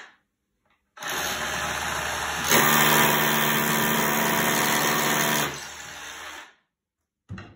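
A rotary hammer drill whirs loudly, boring into a concrete block wall.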